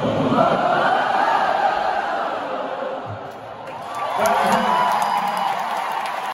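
A huge stadium crowd sings along loudly, echoing across the open arena.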